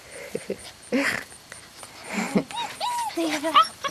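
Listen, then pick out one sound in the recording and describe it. A young girl squeals and laughs close by.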